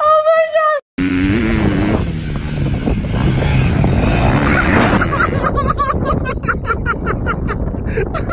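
A motorbike engine roars.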